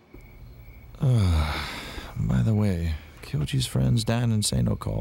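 An older man speaks calmly and close by.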